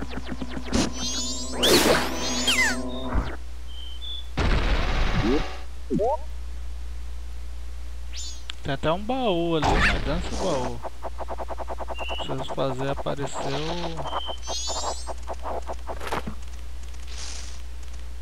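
Playful video game music plays throughout.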